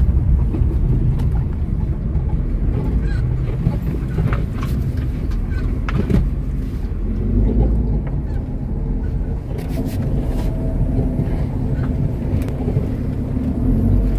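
Tyres crunch and rattle over loose gravel.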